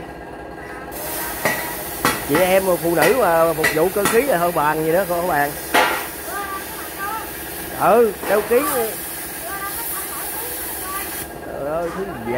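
An electric welder crackles and hisses steadily.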